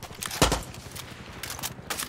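A rifle magazine clicks as it is swapped.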